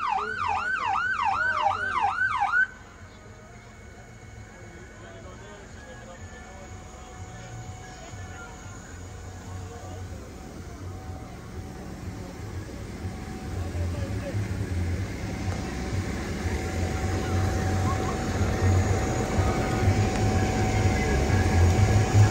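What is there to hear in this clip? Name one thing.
Water sprays and hisses from a fire hose.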